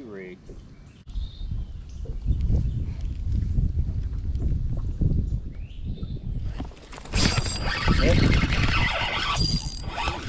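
A fishing reel clicks as it is cranked.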